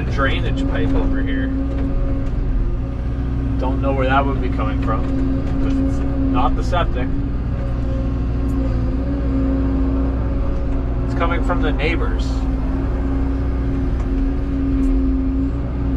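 An excavator engine hums steadily up close from inside the cab.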